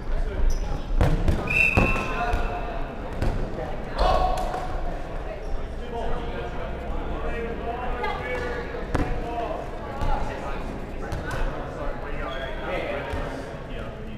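A ball thuds and bounces on a wooden floor.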